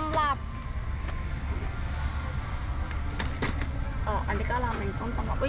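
A plastic package crinkles under a hand.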